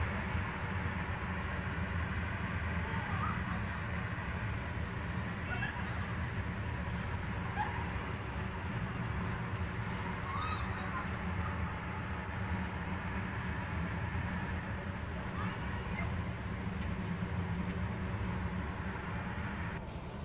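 Distant city traffic hums steadily.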